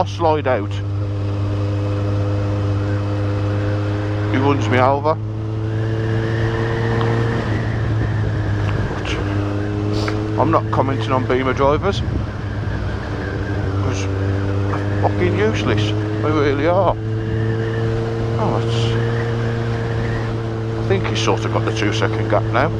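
Wind rushes past a motorcycle.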